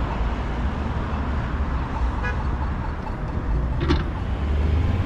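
Bicycle tyres roll over pavement.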